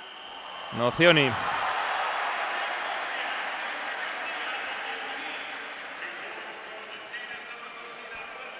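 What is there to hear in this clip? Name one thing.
A large crowd cheers loudly in a big echoing arena, then fades.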